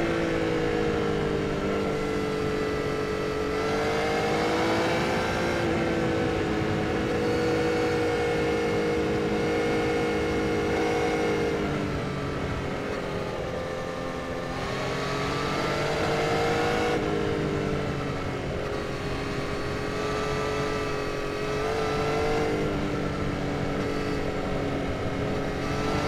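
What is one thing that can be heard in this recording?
A motorcycle engine hums steadily, rising and falling in pitch.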